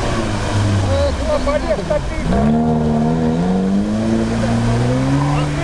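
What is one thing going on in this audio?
An engine revs hard and rises in pitch.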